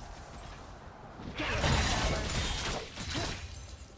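Game characters clash with sharp hits.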